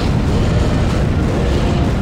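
A huge monster roars deeply.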